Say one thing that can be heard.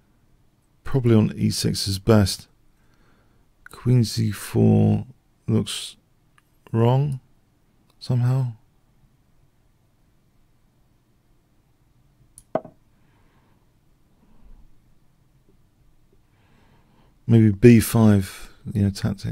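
A middle-aged man speaks thoughtfully into a close microphone, in short bursts with pauses.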